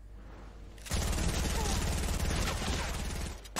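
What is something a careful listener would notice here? Wooden walls clatter quickly into place.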